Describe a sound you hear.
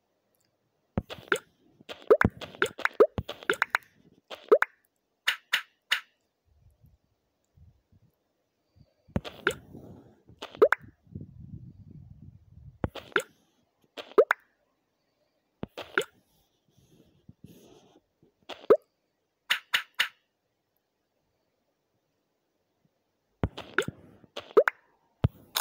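Game tiles clack softly as they stack onto each other in quick bursts.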